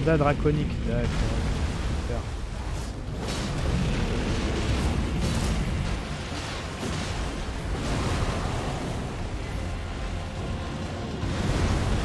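Heavy blows thud and crash.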